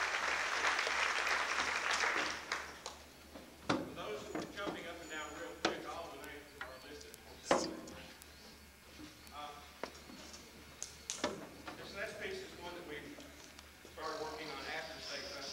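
A band plays brass and wind instruments in a large hall.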